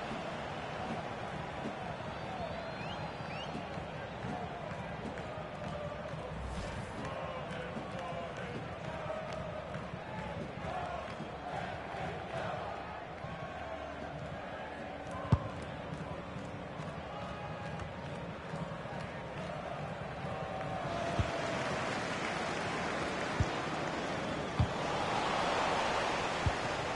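A stadium crowd murmurs and roars steadily, swelling louder near the end.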